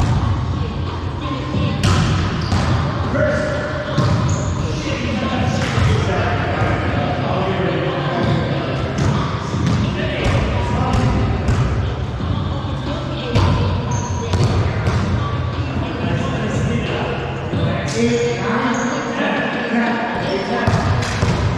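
Men call out to each other across an echoing hall.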